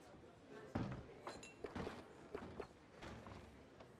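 A soft menu click sounds.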